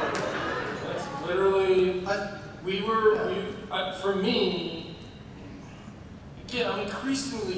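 A man speaks with animation through a microphone in a large hall.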